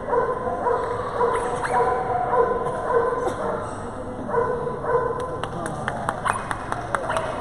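A crowd of people murmurs in a large echoing hall.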